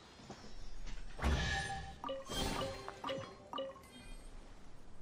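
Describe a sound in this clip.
A bright magical chime rings out and shimmers.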